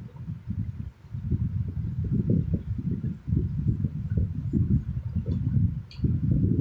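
A cloth rubs across a whiteboard in short strokes.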